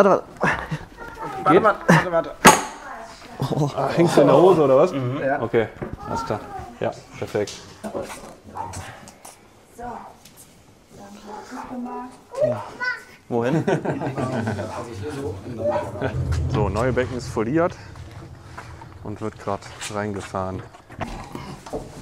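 Men talk close by as they heave something heavy.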